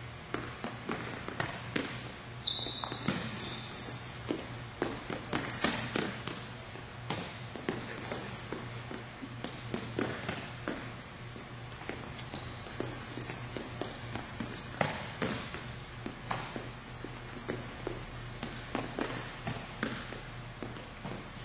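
A volleyball thumps off a player's arms again and again in a large echoing hall.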